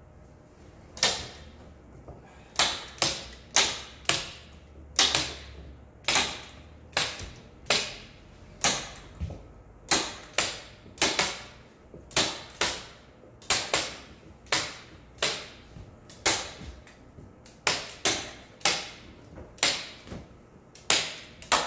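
A hand tool taps sharply again and again along a wooden edge.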